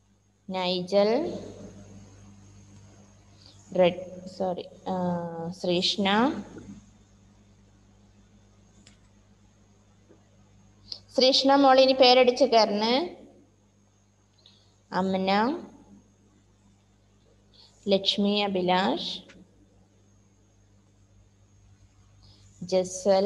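A woman speaks calmly over an online call in short phrases.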